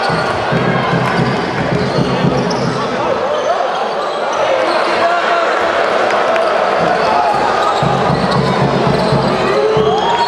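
A basketball bounces on the wooden floor.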